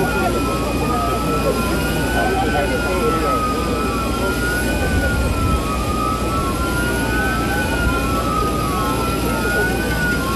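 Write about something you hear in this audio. A crowd of men and women talk over one another outdoors nearby.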